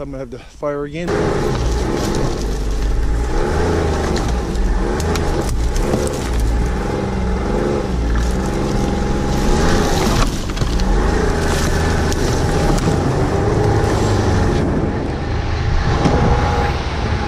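A snowmobile engine roars loudly, rising and falling in pitch as it revs.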